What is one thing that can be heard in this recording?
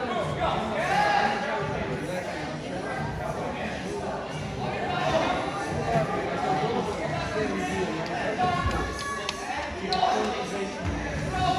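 Children and adults talk and call out in a large echoing hall.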